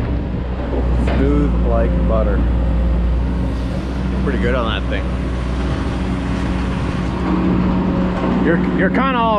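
A young man talks to the microphone close by.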